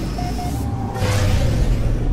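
A spaceship's engine bursts into a loud roaring thrust.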